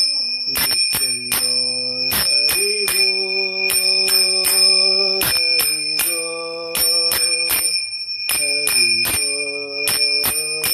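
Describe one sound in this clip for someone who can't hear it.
A man chants in a steady, sing-song voice close by.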